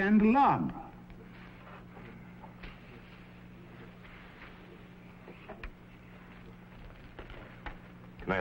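Paper rustles and crinkles under hands.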